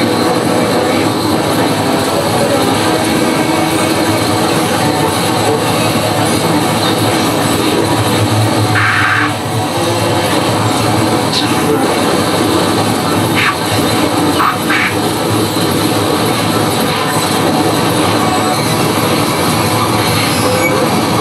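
An electronic instrument plays a dense, buzzing drone.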